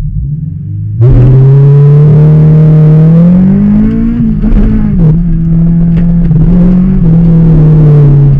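A car engine revs loudly as the car accelerates hard.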